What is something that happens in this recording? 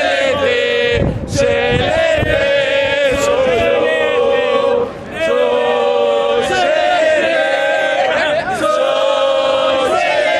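A crowd of men chants and sings loudly outdoors.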